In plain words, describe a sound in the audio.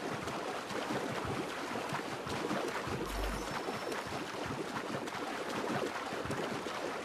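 Water splashes steadily as a swimmer strokes through choppy waves.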